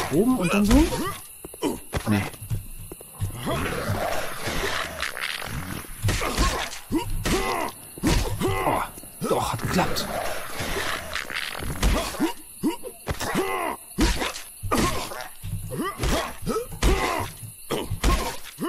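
Sharp hits thud repeatedly against a monster.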